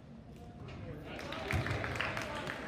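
A small crowd cheers and claps after a basket.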